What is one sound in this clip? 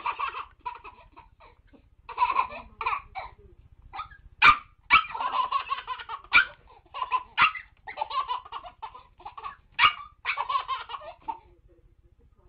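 A baby laughs and squeals loudly and excitedly, close by.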